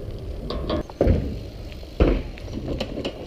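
A bicycle thumps over bumps on the pavement.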